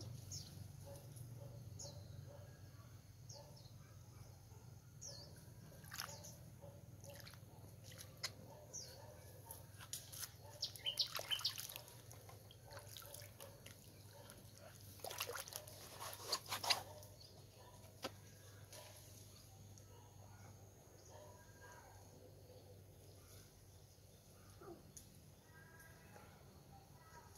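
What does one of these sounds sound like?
Water splashes and trickles as hands work in it.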